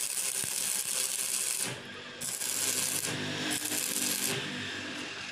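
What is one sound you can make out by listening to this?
An electric welding arc crackles and hisses loudly.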